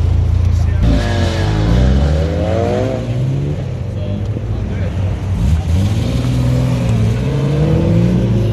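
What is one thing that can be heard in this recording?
Another car engine revs hard and rumbles as it drives past.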